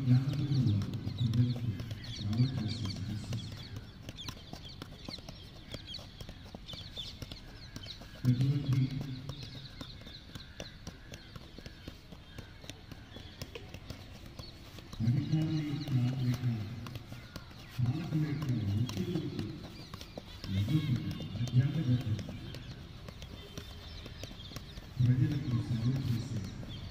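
A football thuds as it is juggled off feet and knees.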